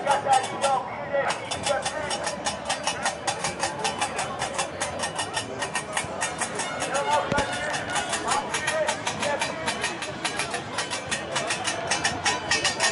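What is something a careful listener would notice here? A large crowd of men and women shouts and chants outdoors.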